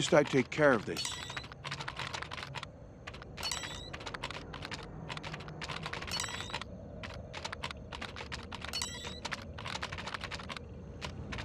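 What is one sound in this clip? Electronic clicks and beeps sound as a game panel is operated.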